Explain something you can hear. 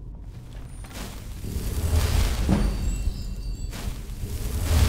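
A magic spell whooshes and crackles loudly.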